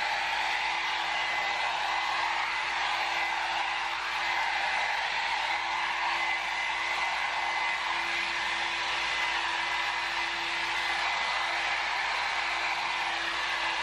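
A hot air brush blows with a steady whirring hum.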